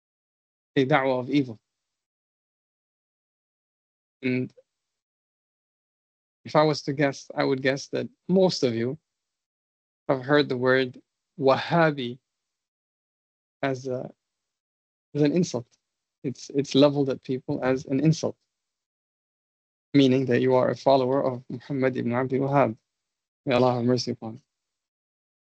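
A man speaks calmly in short phrases through an online call, with pauses between them.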